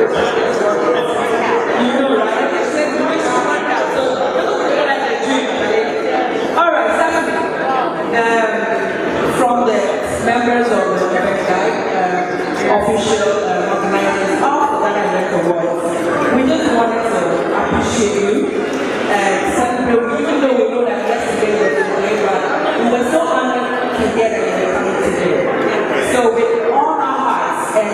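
A woman speaks with animation into a microphone over loudspeakers.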